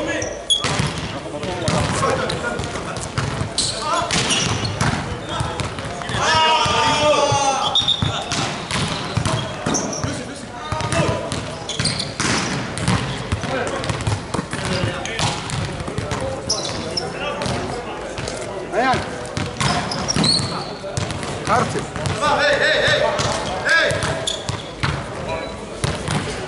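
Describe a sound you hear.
Volleyballs thud off players' hands and arms again and again, echoing in a large hall.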